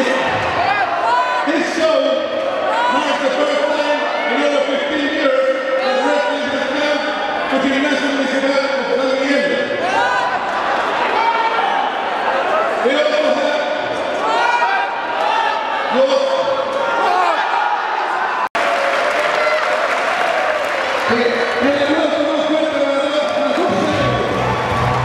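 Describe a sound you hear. A man announces loudly and with animation through a microphone and loudspeakers in a large echoing hall.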